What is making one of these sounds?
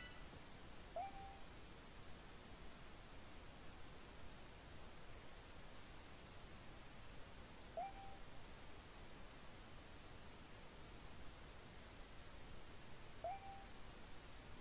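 A short rising electronic chirp sounds a few times.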